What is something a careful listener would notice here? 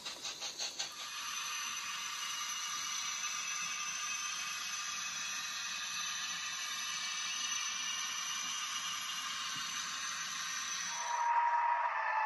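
A small model train hums and rattles steadily along its track.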